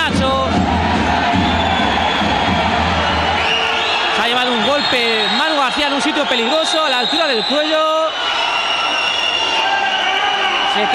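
A crowd cheers and chatters steadily in a large echoing hall.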